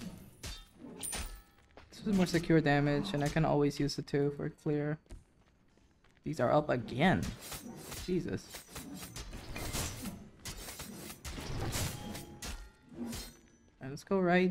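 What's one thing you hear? Blades clash and strike in a fast fight.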